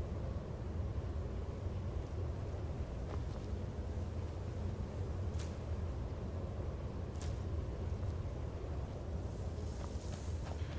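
A fire crackles and roars softly.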